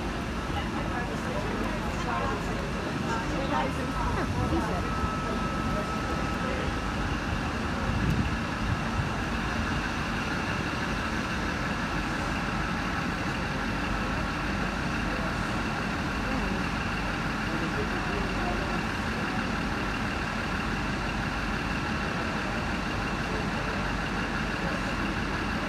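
A parked train hums steadily nearby.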